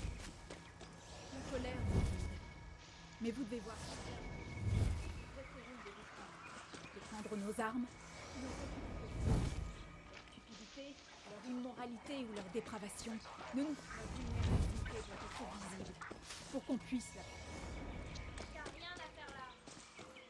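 A woman speaks calmly and earnestly, close by.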